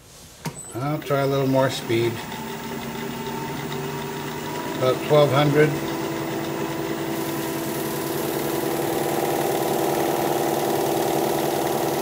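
A lathe motor starts and hums steadily.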